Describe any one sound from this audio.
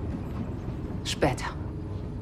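A young woman speaks up with surprise close by.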